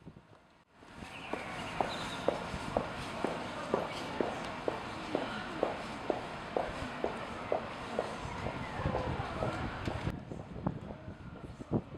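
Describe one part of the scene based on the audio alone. A crowd of men and women chatters in the distance outdoors.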